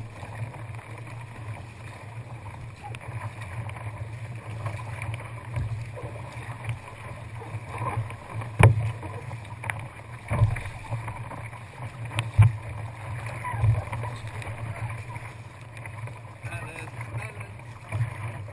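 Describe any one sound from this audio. A paddle dips and splashes into the water in a steady rhythm.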